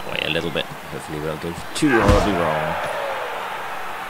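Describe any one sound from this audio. A ball is kicked with a dull thud.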